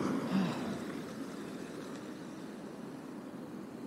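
A car drives past close by and fades into the distance.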